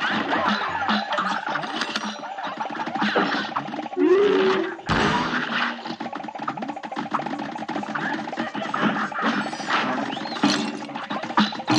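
Rapid cartoon gunfire rattles on without pause.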